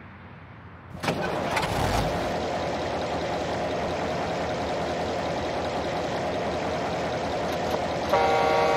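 A truck's diesel engine starts up and then idles with a steady rumble.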